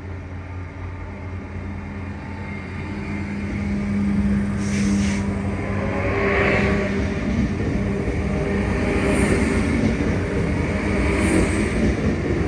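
A train pulls away, rumbling louder as it picks up speed.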